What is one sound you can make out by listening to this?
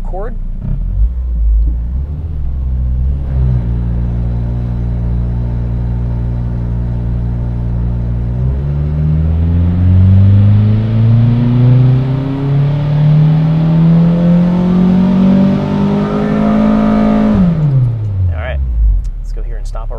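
A car engine idles, then revs up steadily to a loud high roar and drops back down.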